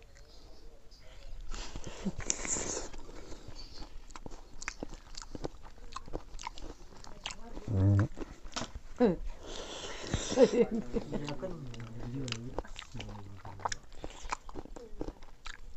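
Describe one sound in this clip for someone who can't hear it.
An elderly man chews and smacks food noisily close by.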